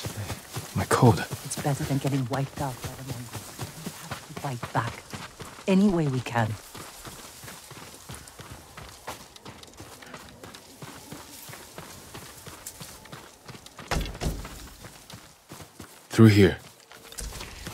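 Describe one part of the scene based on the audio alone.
Footsteps rustle softly through grass and dry twigs.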